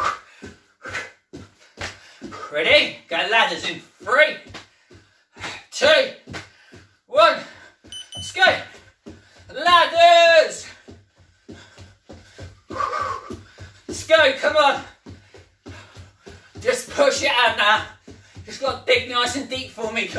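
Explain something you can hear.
Bare feet thump on a wooden floor in quick jumps.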